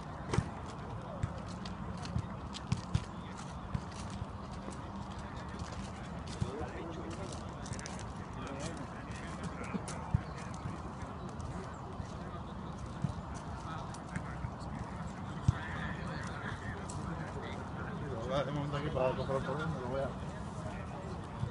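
Footballers jog in a group across grass.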